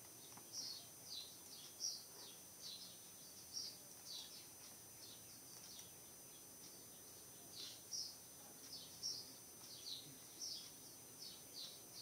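A computer mouse clicks softly now and then.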